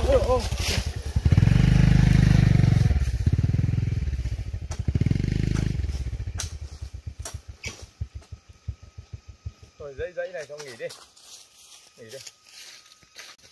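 A hoe chops into dry soil with repeated thuds.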